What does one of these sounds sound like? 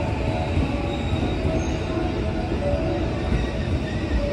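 Steel wheels squeal on the rails.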